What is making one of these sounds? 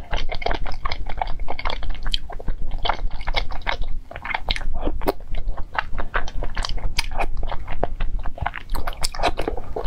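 A young woman slurps and chews soft food close to a microphone.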